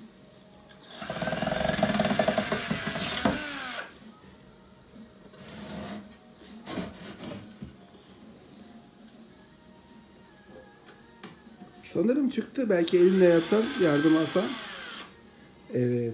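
A cordless drill whirs in short bursts, driving screws into wood.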